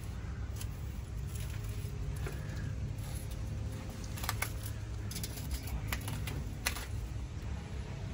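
A net scrapes and rustles against rough ground.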